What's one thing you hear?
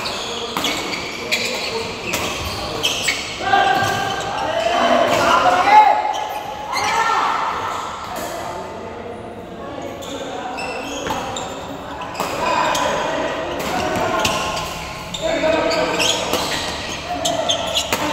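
A shuttlecock is struck sharply by rackets, back and forth.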